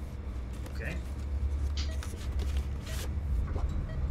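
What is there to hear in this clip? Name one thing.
Paper rustles as a folder is opened.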